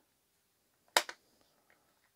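A plastic housing clicks into place on a tool.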